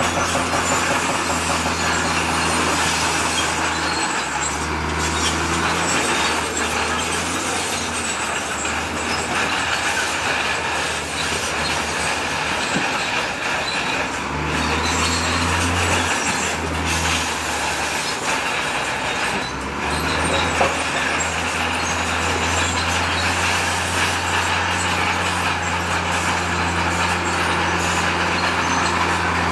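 A bulldozer's tracks clank and grind over rubble.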